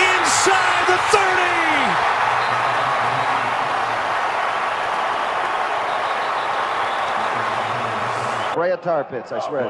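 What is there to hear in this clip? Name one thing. A stadium crowd roars loudly.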